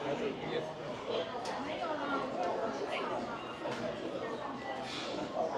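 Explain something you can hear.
A crowd of people murmurs and chatters in a large, echoing indoor space.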